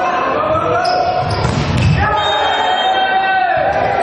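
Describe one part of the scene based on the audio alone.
A volleyball is spiked with a sharp slap.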